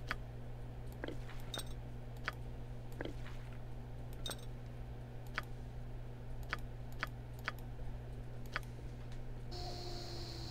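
Short, sharp interface clicks sound again and again as items are moved.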